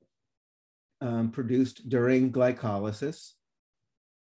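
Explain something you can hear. A man speaks calmly through a microphone, as in an online call.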